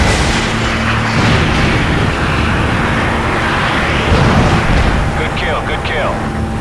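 A jet engine roars loudly.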